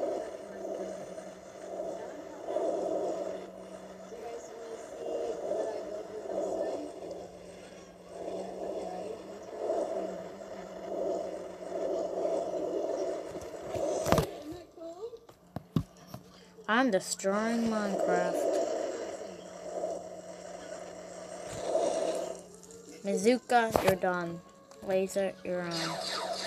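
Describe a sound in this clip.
A young child speaks close to a microphone.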